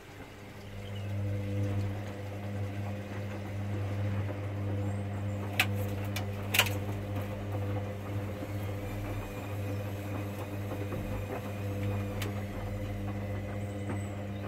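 A washing machine drum turns with a low, steady hum.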